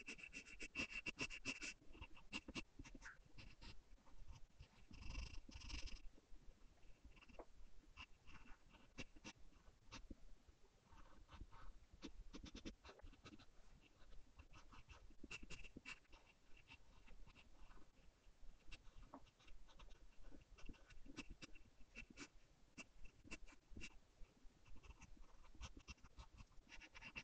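A pencil scratches and scrapes on paper in quick strokes, close by.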